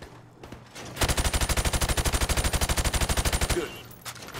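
A rifle fires a rapid automatic burst of gunshots.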